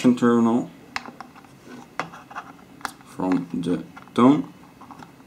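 A screwdriver clicks and scrapes against a small screw.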